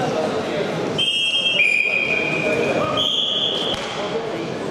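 A referee blows a whistle in short shrill blasts.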